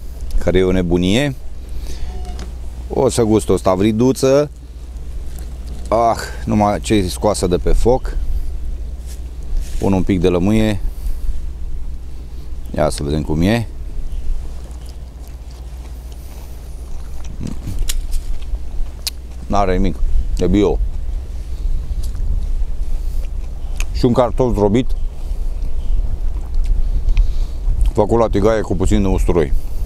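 A man speaks calmly and close by, in short bursts with pauses.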